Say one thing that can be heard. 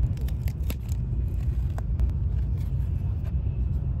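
A plastic lid clicks as it is lifted off a food tray.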